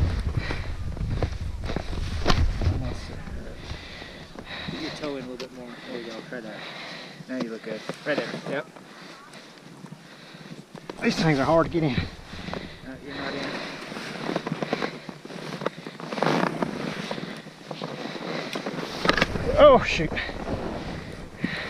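Skis crunch and shuffle through deep powder snow.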